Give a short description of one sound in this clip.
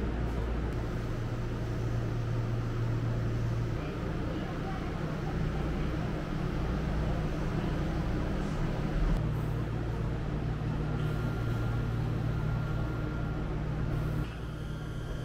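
A train hums and rumbles low as it rolls past and slows to a stop.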